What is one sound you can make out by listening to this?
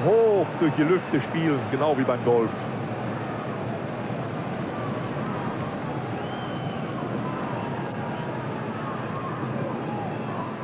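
A large stadium crowd murmurs steadily outdoors.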